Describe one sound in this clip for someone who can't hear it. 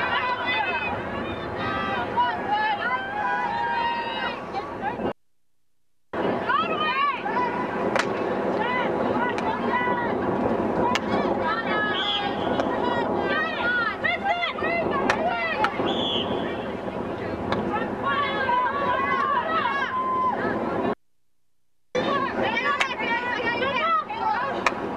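Hockey sticks clack sharply against a ball.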